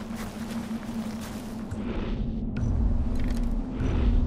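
A wooden bow creaks as its string is drawn.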